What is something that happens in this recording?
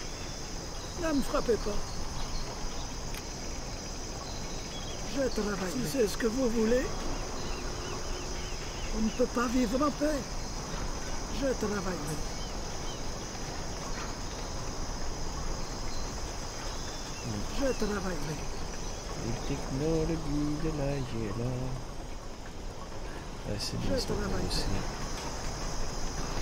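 A young man talks calmly into a microphone, close up.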